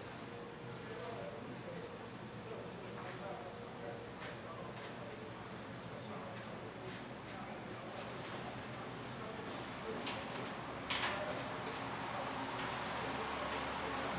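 Fingers tap on a laptop keyboard.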